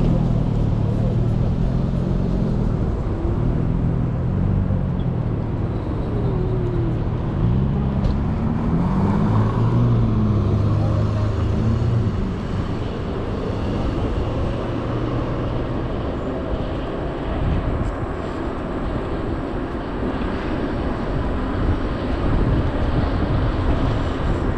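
Wind rumbles steadily outdoors as a bike rolls along.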